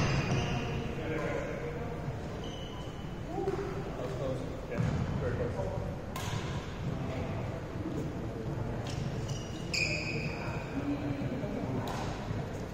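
Young men talk casually in a large echoing hall.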